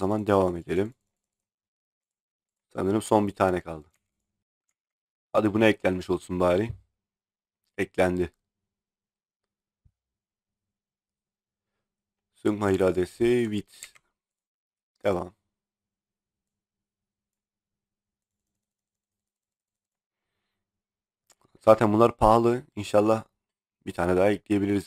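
A man talks into a microphone in short bursts with pauses.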